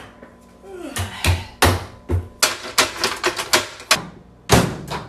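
Cabinet doors bang shut loudly.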